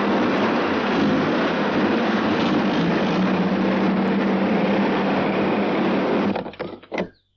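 Jeep engines rumble loudly over rough ground.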